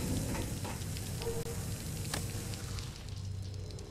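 A metal cabinet door swings open.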